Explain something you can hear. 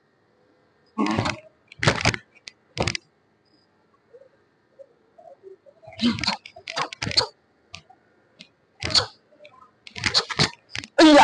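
A karate uniform snaps sharply with quick punches and kicks.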